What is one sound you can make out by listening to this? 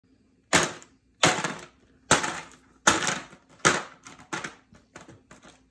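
Ice cubes clatter and rattle in a plastic tub.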